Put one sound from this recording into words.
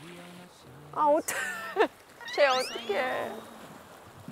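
A woman laughs and talks cheerfully.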